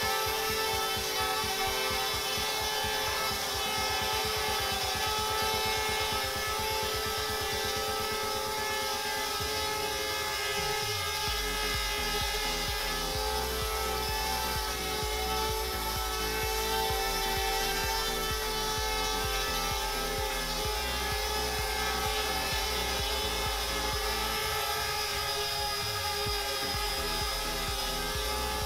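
A drone's propeller whirs with a steady, high hum.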